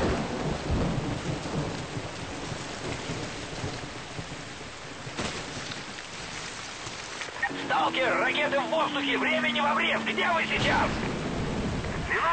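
Footsteps crunch over leaves and soil on a forest floor.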